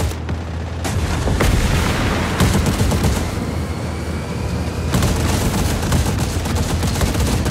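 A cannon fires in rapid bursts.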